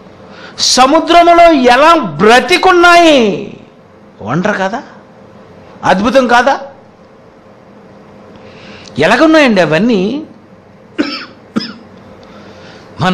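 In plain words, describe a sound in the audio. A man preaches forcefully into a microphone in short, emphatic bursts with pauses between.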